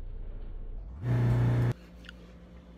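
A bench grinder's wheel spins with a loud whine.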